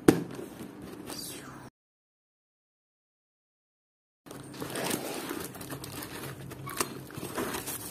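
Paper packaging rustles and crinkles as hands handle a parcel.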